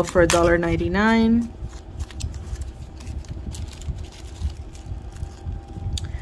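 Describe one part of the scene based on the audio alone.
Paper tags rustle as they are handled.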